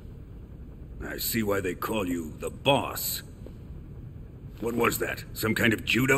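An older man speaks calmly and mockingly close by.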